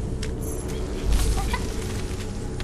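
A magical shimmering whoosh bursts out.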